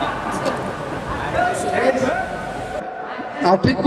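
Middle-aged women talk and laugh cheerfully close by.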